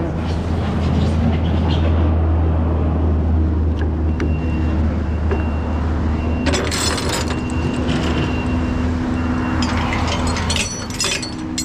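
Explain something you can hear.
Traffic rumbles past on a road outdoors.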